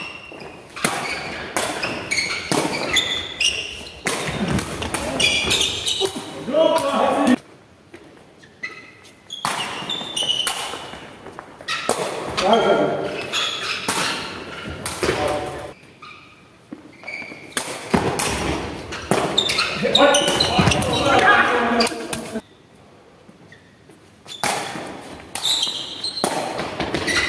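Sneakers squeak on the hall floor.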